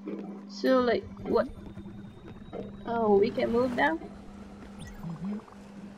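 Water splashes against a boat's hull.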